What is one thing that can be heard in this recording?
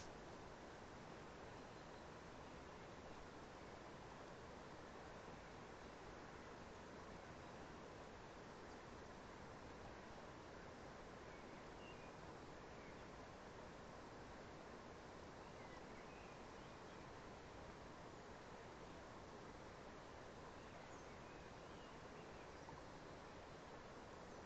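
Wind blows steadily against the microphone outdoors.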